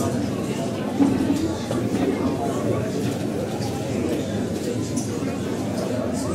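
An elderly woman speaks into a microphone over loudspeakers in an echoing hall.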